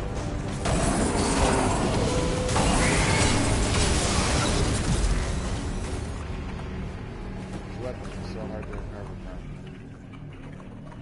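Heavy metal crashes and explodes with a loud roaring blast, then slowly dies away.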